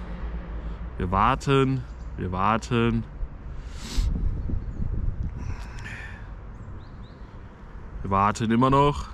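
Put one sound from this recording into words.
A young man speaks casually and close by.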